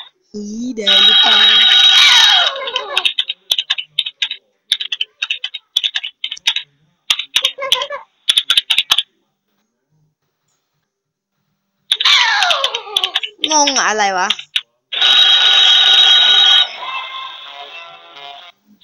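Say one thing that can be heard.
A cartoonish electronic game tune plays in short bursts.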